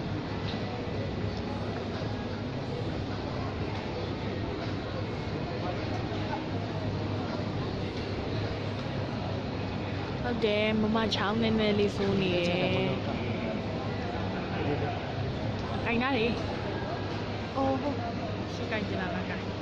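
A young woman answers into a microphone, heard over loudspeakers.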